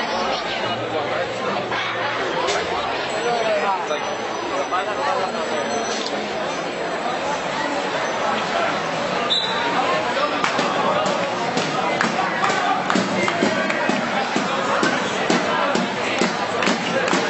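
A large outdoor crowd chatters and shouts loudly.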